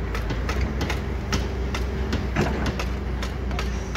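Dirt and stones pour from an excavator bucket into a steel truck bed.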